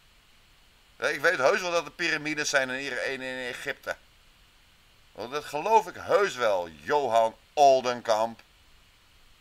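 A man speaks calmly, heard through a small speaker.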